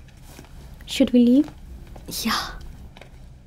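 A young woman speaks briefly and quietly.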